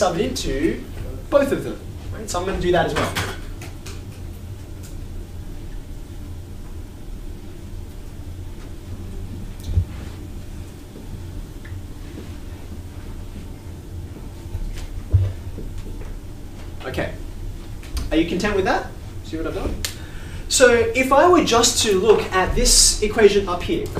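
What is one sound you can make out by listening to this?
A man speaks calmly and clearly in a room.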